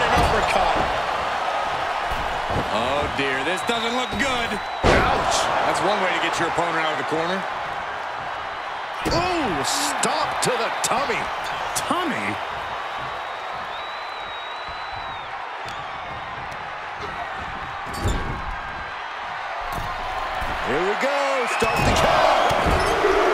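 A large crowd roars and cheers steadily in a big arena.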